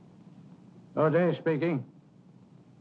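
An elderly man speaks gruffly into a telephone.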